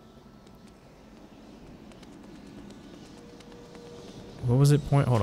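Light footsteps patter quickly on stone.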